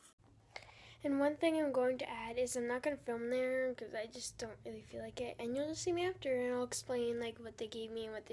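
A young girl sings close by, holding long notes.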